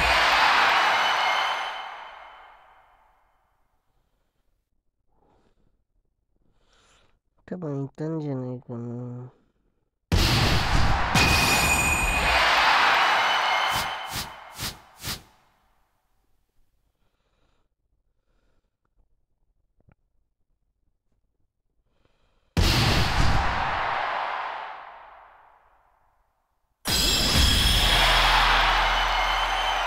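A crowd roars and cheers in a large hall.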